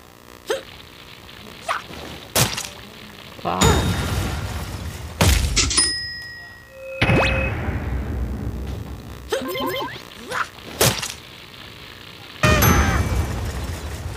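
Video game explosions boom and crackle.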